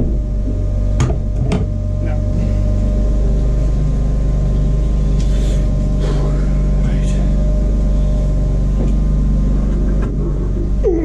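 An angle grinder whirs steadily nearby.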